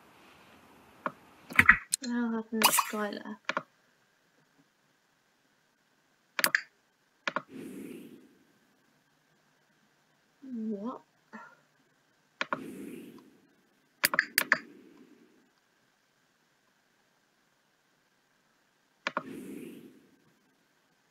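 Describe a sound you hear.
Short game interface clicks and chimes sound now and then.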